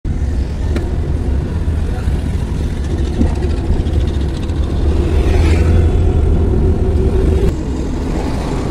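A car drives along a road, heard from inside.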